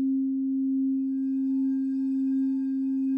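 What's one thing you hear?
A second crystal singing bowl starts to ring, adding higher tones.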